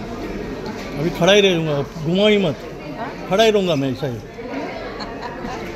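A middle-aged woman speaks loudly close by.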